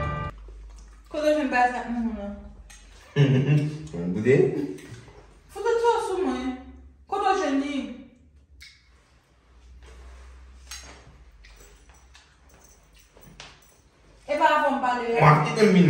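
A young woman speaks nearby in a firm voice.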